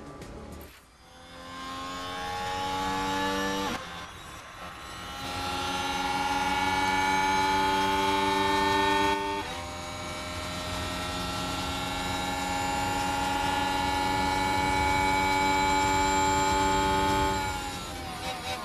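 A racing car engine whines at high speed, shifting gears.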